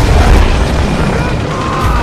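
A rocket whooshes through the air.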